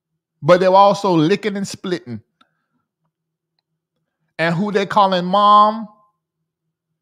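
A man sings into a close microphone in two short phrases, with a silence between them.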